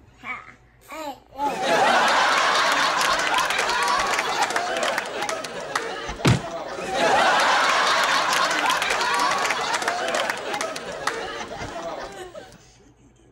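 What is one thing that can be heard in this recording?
A toddler laughs and squeals excitedly close by.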